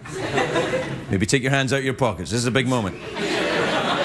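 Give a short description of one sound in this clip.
A young man speaks briefly and clearly.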